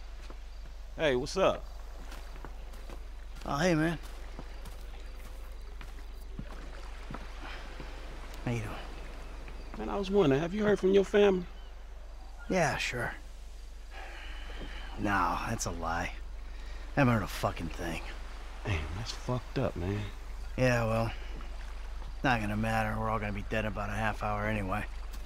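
A man speaks casually at close range.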